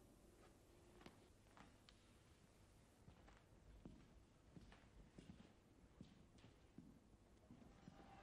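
Footsteps shuffle softly across a stone floor in a large echoing hall.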